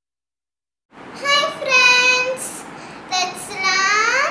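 A young girl speaks with animation close by.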